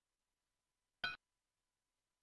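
A short bright video game pickup sound plays.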